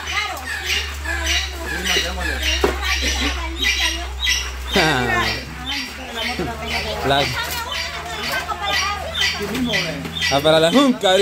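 Several women talk together close by, with animation.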